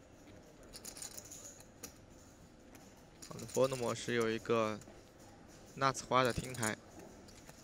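Poker chips click softly as they are shuffled in a hand.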